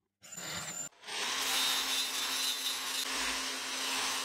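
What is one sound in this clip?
A sander whirs loudly against metal.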